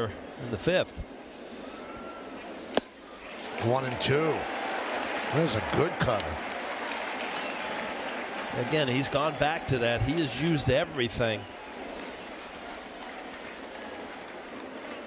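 A stadium crowd murmurs in the background.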